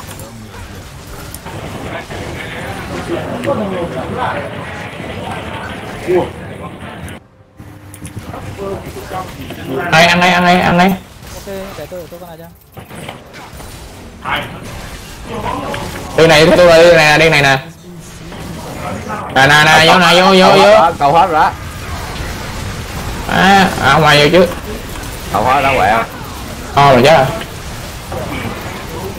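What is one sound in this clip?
Spells and weapons clash and burst in a game fight.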